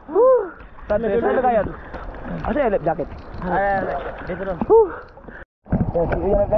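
Water splashes and sloshes at the surface.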